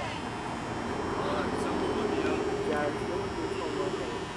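Young male players call out faintly across an open field.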